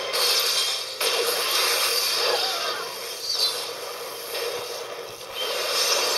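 An explosion roars.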